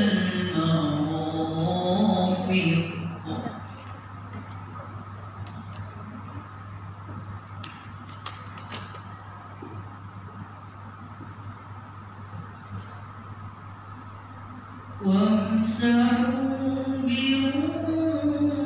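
A boy chants melodically through a microphone and loudspeakers in an echoing hall.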